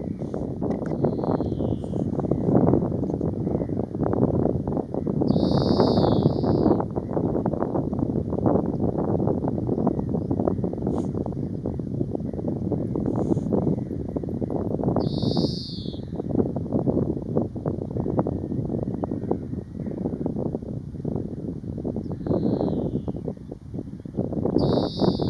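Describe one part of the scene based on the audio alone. A small bird chirps in short bursts nearby.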